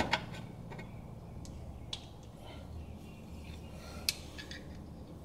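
Metal parts click and tap softly as hands work on them.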